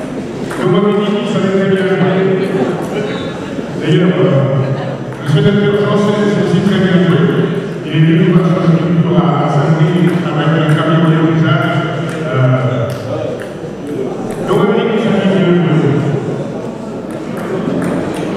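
An elderly man speaks calmly into a microphone over loudspeakers in a large echoing hall.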